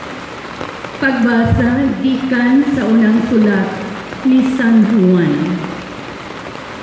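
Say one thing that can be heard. A man chants through loudspeakers, echoing across an open space.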